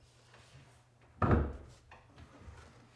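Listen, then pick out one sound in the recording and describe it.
A heavy cabinet thuds and bumps as a man pushes it.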